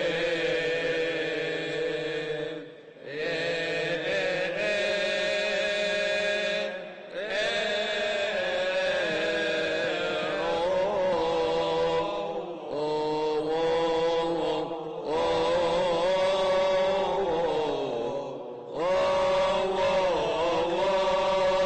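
Small hand cymbals clash in a steady beat.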